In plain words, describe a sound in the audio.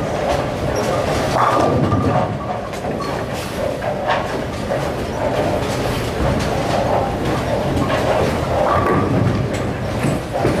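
Many voices murmur in a large echoing hall.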